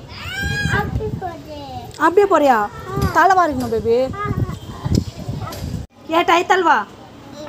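A young child talks loudly and excitedly close by.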